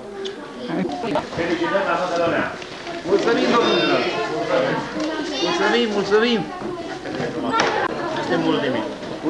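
Several people talk and call out at once in a busy room.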